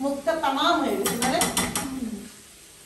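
A spoon scrapes and clinks against a frying pan.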